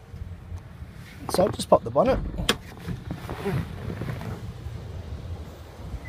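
A car door latch clicks open.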